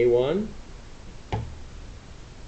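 A laptop key clicks once.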